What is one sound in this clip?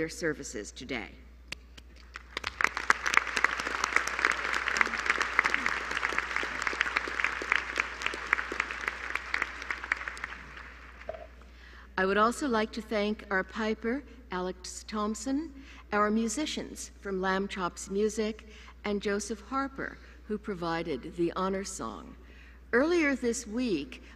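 An elderly woman speaks calmly into a microphone in a large echoing hall.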